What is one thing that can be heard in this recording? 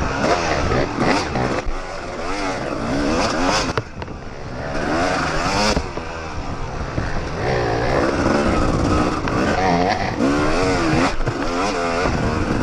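A dirt bike engine revs and whines up and down close by.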